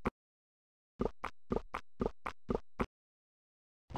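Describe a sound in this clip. A cartoon character's small feet patter in quick, even steps.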